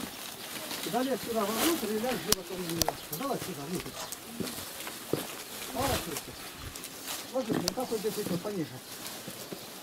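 Elderly men talk nearby in raised voices.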